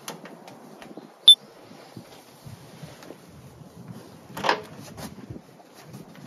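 Knocks and thumps sound as a woman climbs into a small camper box.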